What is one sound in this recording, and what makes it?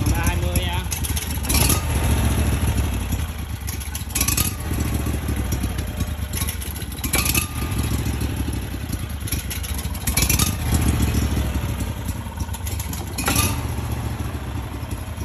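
A small engine runs close by with a steady, low rumble.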